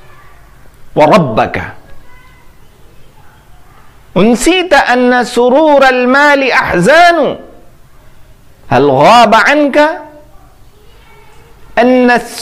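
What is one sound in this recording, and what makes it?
A man recites verse in a melodic, chanting voice close to a microphone, in bursts with pauses.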